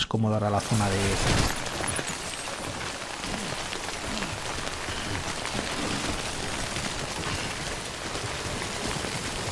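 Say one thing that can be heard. Footsteps tramp over rough, grassy ground.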